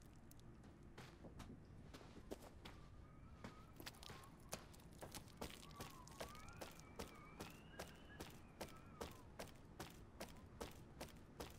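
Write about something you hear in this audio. Slow, even footsteps thud on a hard floor.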